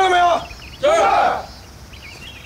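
A group of young men shout in unison.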